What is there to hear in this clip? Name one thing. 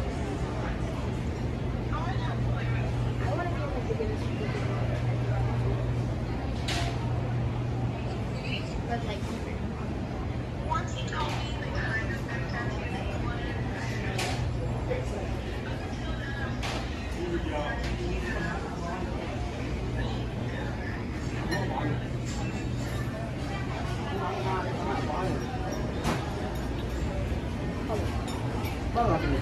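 Voices of people murmur at a distance.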